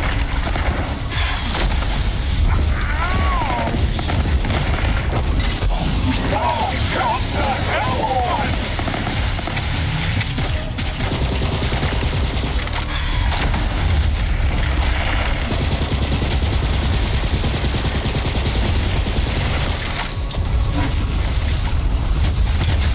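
Energy blasts and explosions boom in a video game.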